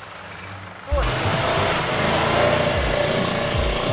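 A car drives by on a dirt track, its engine roaring.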